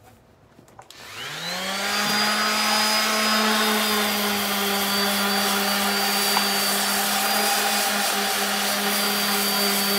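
An electric sander starts up and whirs steadily with a high whine.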